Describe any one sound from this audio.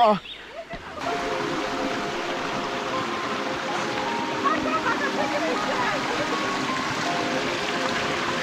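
Water rushes over rocks in a stream.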